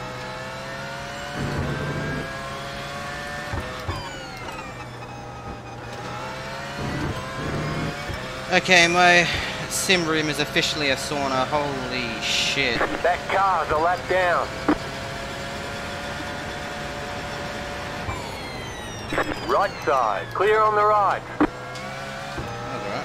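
A race car engine roars and whines as it speeds up and changes gear.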